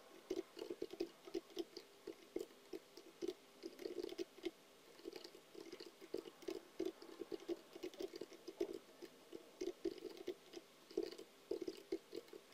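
Keys clack rapidly on a keyboard in short bursts.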